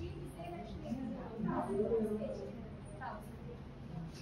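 A woman talks briefly nearby.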